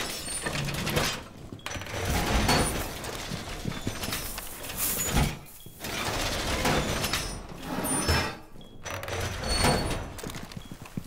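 Heavy metal panels clank and scrape into place.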